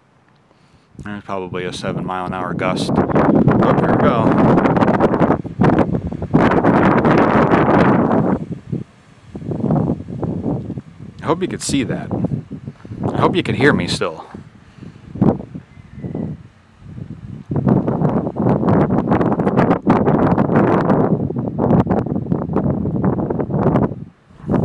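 Wind gusts roar outdoors in bursts.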